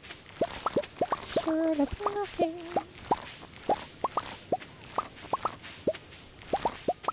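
Quick rising pops ring out again and again as crops are picked.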